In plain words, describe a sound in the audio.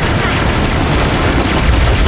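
Electric zaps crackle.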